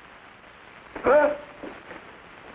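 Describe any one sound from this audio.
A boy cries out sharply.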